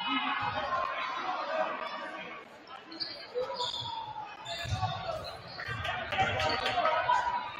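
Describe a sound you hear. A crowd of spectators chatters in an echoing gym.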